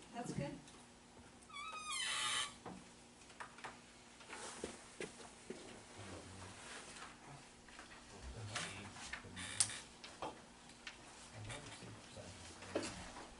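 A man speaks quietly at a distance in an echoing hall.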